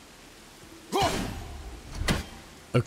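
An axe strikes a hanging object with a sharp clank.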